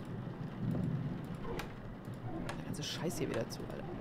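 A cabinet door clicks open.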